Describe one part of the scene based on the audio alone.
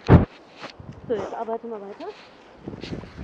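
A woman speaks calmly to a dog nearby.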